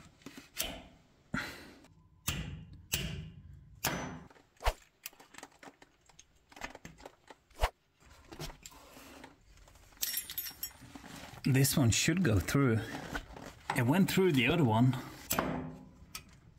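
Small metal parts click and clink against each other close by.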